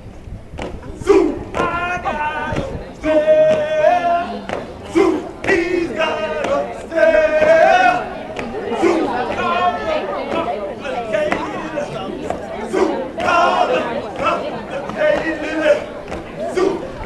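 Young men chant and shout loudly together outdoors.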